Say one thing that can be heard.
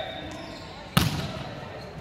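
A volleyball is struck hard by a hand.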